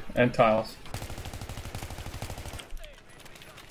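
A rifle fires in a rapid, rattling burst.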